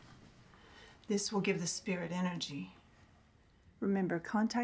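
A woman speaks in a low, tense voice nearby.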